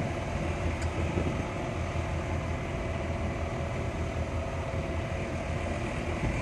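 A car's tyres rumble along a road.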